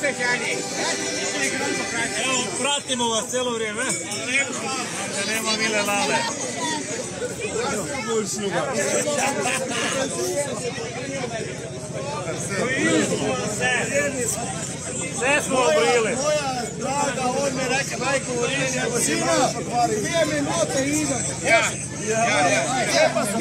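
A crowd of men and women chatter and laugh outdoors.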